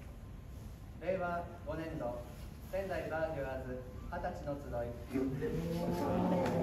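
A brass ensemble plays a lively tune in a hall.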